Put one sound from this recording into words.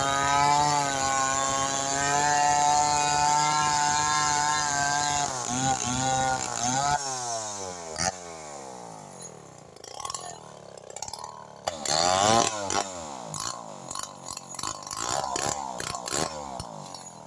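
A chainsaw engine roars steadily, then revs up and down.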